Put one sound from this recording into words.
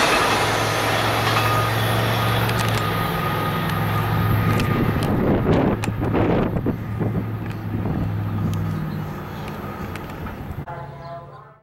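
Train wheels clatter and squeal over the rails.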